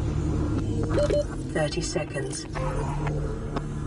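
A soft electronic chime sounds as a menu opens.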